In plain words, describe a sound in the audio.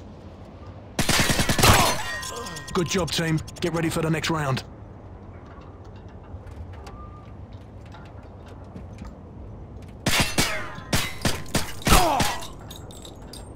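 A rifle fires rapid bursts of shots.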